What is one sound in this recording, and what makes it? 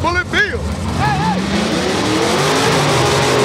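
A race car engine revs up and roars.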